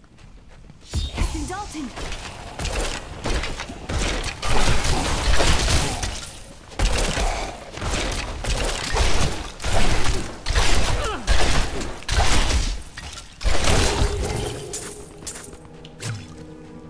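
Blows thud and spells crackle in a fierce fight.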